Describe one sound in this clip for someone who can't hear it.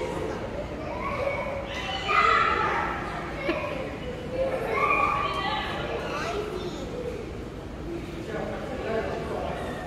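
A young girl chatters excitedly nearby.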